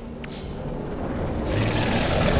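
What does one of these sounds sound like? A vehicle engine rumbles and grows louder.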